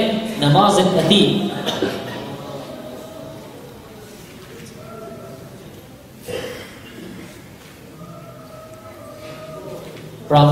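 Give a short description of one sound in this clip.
A man speaks into a microphone with feeling, his voice echoing in a large hall.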